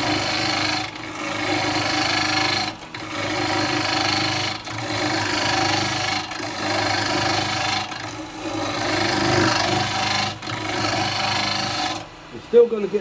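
A gouge scrapes and hisses against spinning wood in repeated passes.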